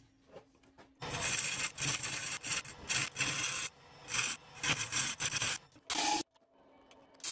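A chisel scrapes loudly against spinning wood.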